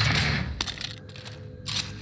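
A gun clicks and rattles as it is reloaded.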